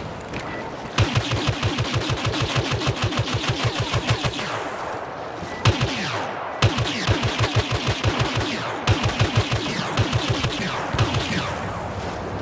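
A blaster rifle fires rapid bursts of laser shots.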